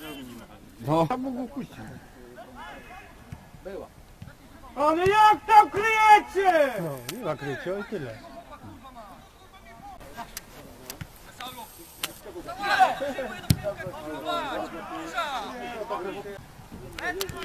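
Young men call out to each other across an outdoor pitch.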